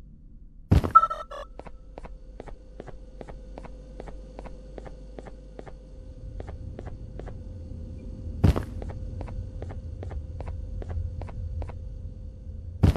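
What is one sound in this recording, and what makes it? A small electronic device beeps rapidly and steadily.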